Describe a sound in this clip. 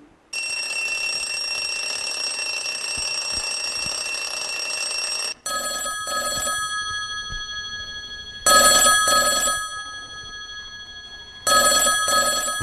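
A telephone rings loudly in bursts.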